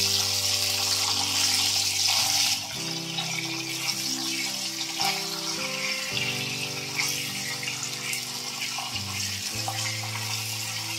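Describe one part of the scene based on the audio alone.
Oil sizzles steadily in a hot pan.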